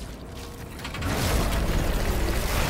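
A creature attacks with a loud, rough shriek.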